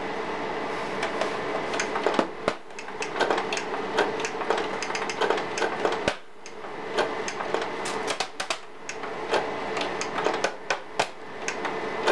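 Hands tap and rub on a plastic casing.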